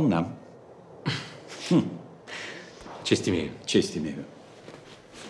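A second man answers calmly with a brief greeting.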